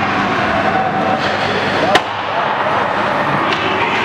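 A hockey stick slaps a puck.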